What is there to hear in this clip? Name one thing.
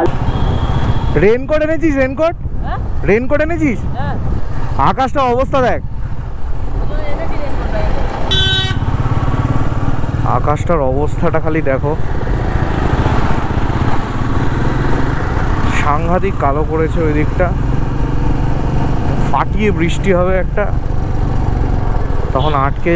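A motorcycle engine rumbles steadily.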